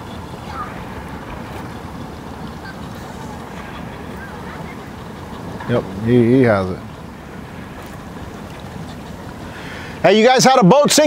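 A boat engine idles nearby.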